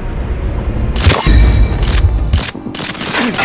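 A silenced pistol fires several quick shots.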